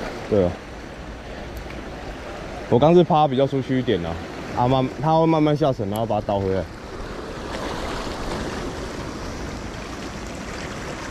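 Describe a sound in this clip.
Waves wash against rocks outdoors.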